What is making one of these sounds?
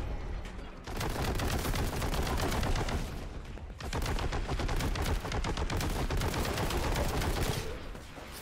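Rapid gunfire rattles loudly in quick bursts.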